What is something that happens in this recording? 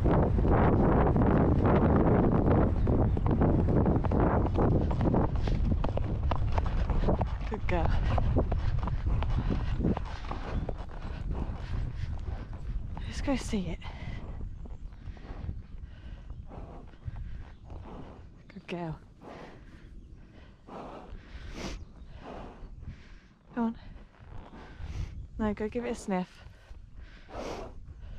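A horse's hooves thud steadily on grass, slowing toward the end.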